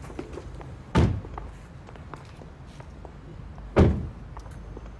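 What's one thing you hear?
A car door slams shut nearby.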